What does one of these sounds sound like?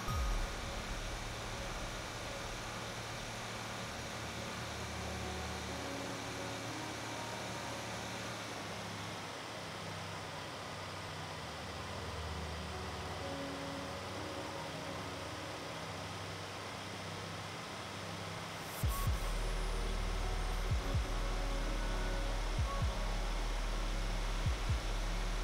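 Tyres hum on the road surface.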